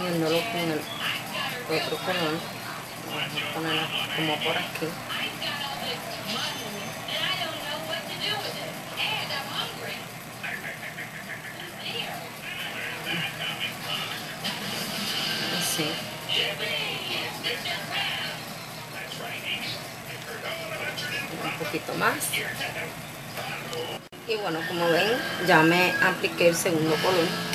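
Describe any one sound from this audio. A woman talks calmly close to a microphone.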